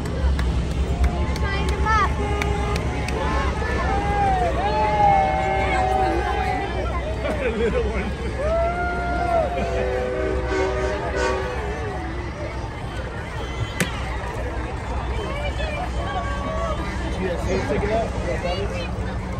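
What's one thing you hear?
A crowd outdoors cheers and shouts along a street.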